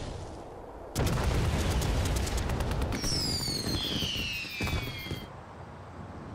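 Flames roar through burning buildings.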